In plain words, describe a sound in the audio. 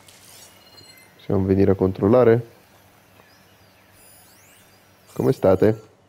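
A shimmering electronic chime sweeps as a scanning pulse spreads out.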